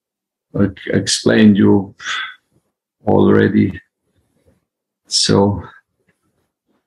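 A middle-aged man speaks calmly in short phrases, close to the microphone.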